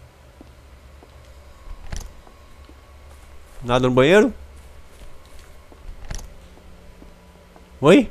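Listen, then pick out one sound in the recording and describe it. A wooden door clicks open.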